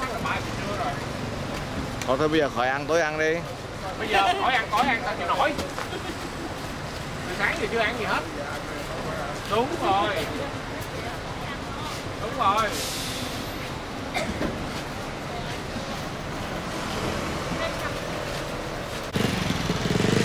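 Men and women chatter nearby in a crowd outdoors.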